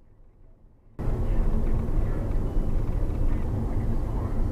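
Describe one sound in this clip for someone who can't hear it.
A man speaks from close by inside a car.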